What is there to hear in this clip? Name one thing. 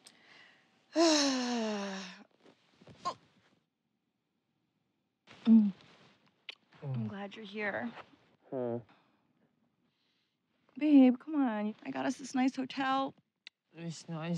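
A woman talks with animation.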